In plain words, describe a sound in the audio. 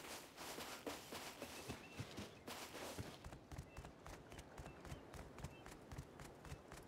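Footsteps crunch quickly over sand and gravel.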